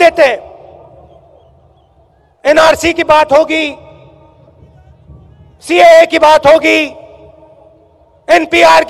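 A man gives a speech forcefully through a microphone and loudspeakers, in short bursts with pauses.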